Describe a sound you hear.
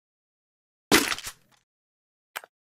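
A menu chime sounds with a short click.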